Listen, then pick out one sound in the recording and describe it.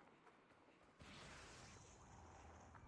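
A deep magical whoosh swells up and hums on.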